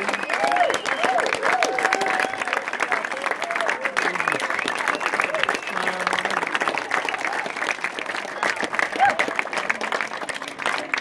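A crowd sings and cheers outdoors.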